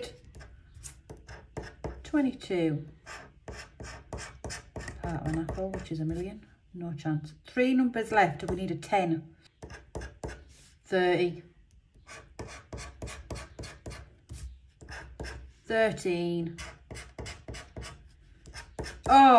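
A metal tool scratches and scrapes across a card in short strokes.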